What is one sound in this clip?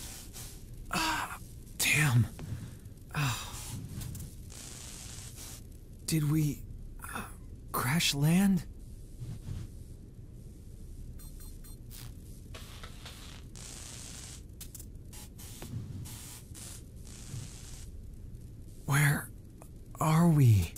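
A young man speaks quietly and hesitantly.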